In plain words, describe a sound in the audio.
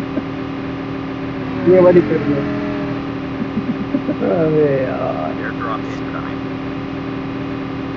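A game vehicle's engine drones steadily.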